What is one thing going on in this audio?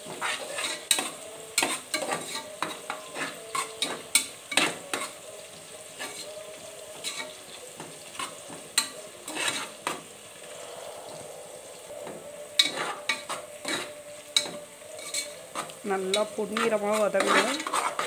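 Oil sizzles gently in a pot.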